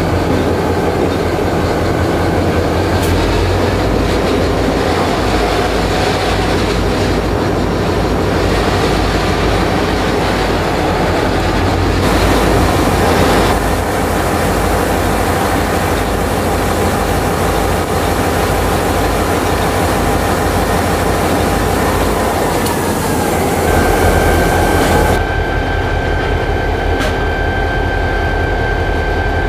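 A diesel locomotive engine rumbles loudly and steadily close by.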